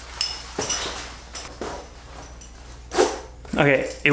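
A buckle clicks and fabric rustles.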